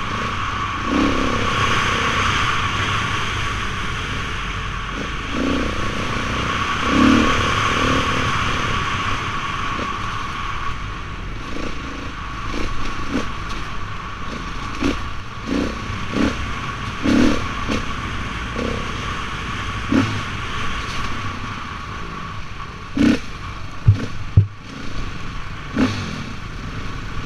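Tyres rumble and thump over a bumpy dirt track.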